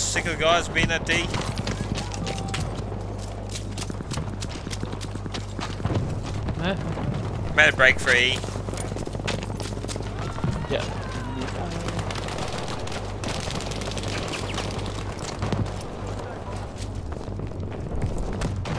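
Footsteps run quickly over rubble and pavement.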